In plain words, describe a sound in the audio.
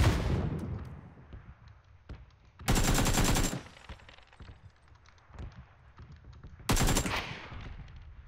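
A rifle fires bursts of gunshots.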